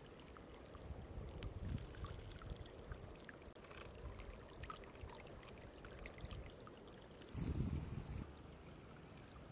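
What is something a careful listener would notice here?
Shallow water trickles and ripples softly.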